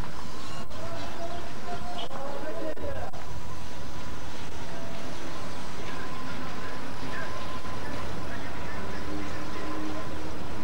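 Car engines idle nearby.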